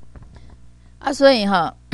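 A woman speaks loudly into a microphone.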